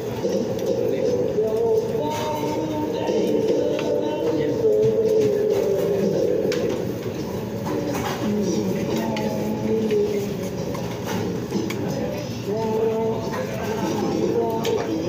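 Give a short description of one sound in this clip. Cutlery clinks against a plate.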